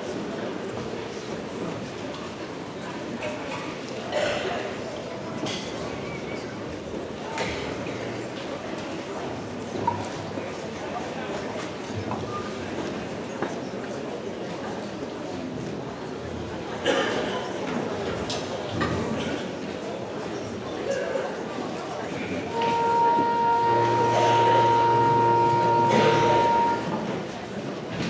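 A seated crowd murmurs and chatters.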